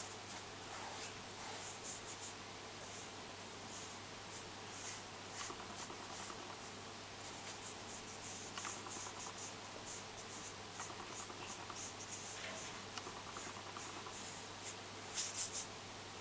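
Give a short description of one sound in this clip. A paintbrush brushes and dabs softly on paper.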